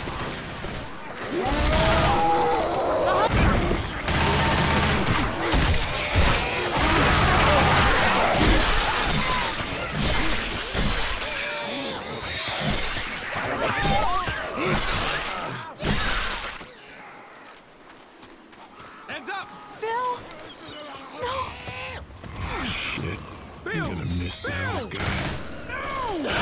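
Zombies snarl and groan close by.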